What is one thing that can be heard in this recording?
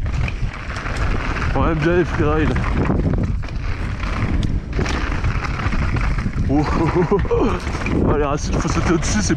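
Bike tyres crunch and rattle over a rough dirt trail.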